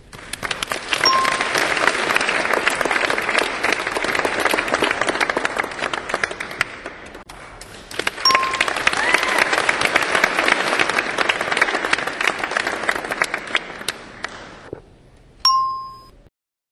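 A game plays short electronic chimes.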